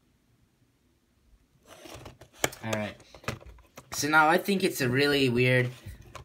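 A cardboard box rustles and taps as it is handled.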